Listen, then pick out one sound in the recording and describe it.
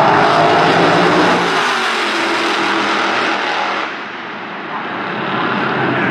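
Two dragster engines roar loudly down the track and fade into the distance.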